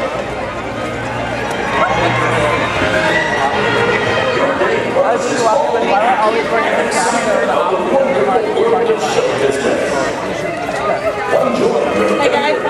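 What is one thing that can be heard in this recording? A crowd of adults chatters nearby in the open air.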